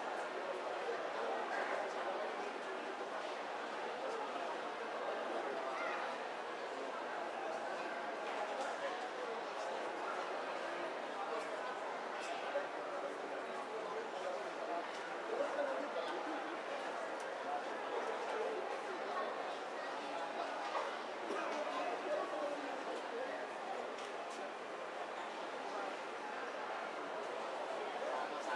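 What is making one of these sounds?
A crowd of people murmurs and chatters indoors.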